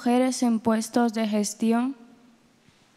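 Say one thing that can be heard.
A young woman reads aloud into a microphone over loudspeakers in a large room.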